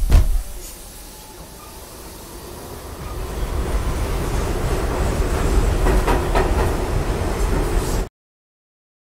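A subway train rumbles away, screeching on the rails.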